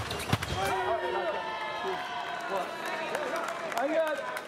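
A young man shouts in triumph.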